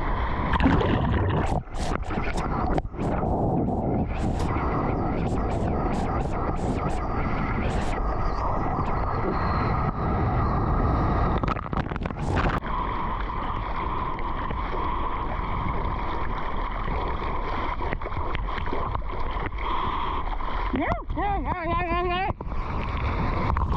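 Water rushes and splashes loudly close by.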